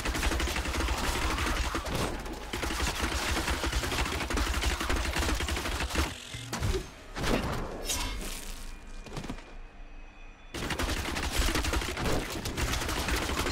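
Magic fire bolts blast and crackle in quick bursts.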